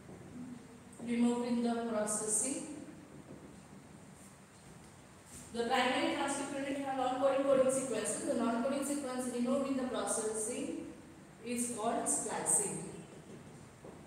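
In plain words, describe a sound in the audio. A young woman speaks calmly, as if teaching, nearby.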